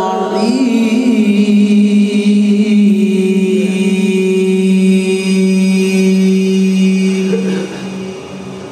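A man sings a long, held note loudly through a microphone, and the note then fades away in an echo.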